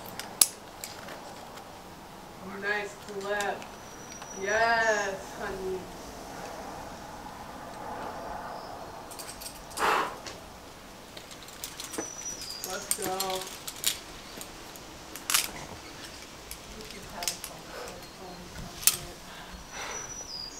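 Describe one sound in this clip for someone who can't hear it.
Climbing gear clinks and rattles on a harness.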